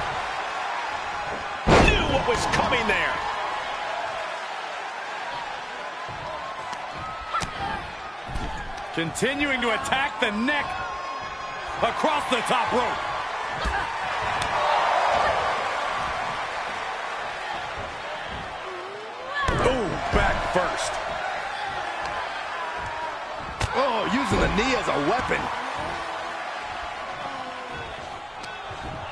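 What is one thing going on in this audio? A large crowd cheers and roars steadily throughout.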